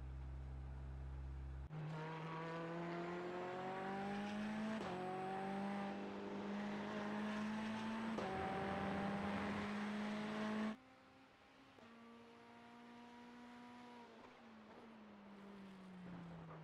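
A racing car engine roars, rising in pitch between gear shifts.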